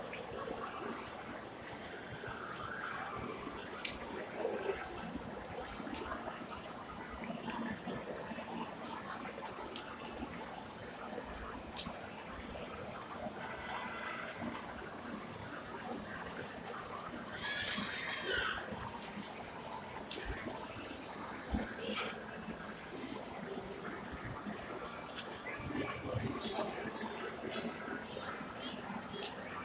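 A woman talks casually, close to the microphone.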